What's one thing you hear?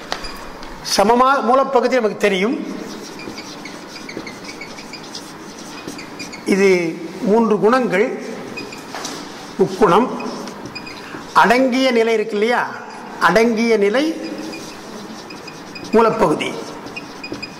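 An elderly man recites slowly through a microphone, in short drawn-out phrases.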